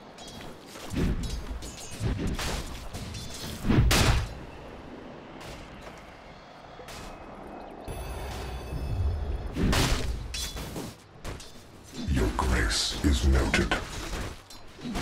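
Spell blasts and hits from a video game battle crash in short bursts.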